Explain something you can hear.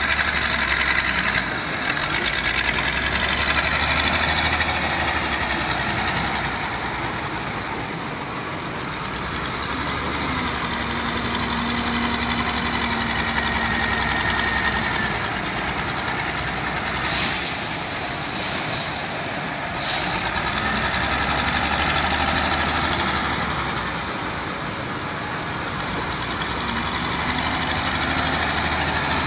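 A wheel loader's diesel engine rumbles and revs nearby.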